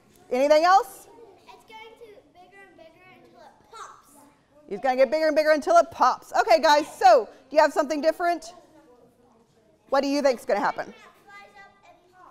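A woman speaks calmly and clearly to a group of children.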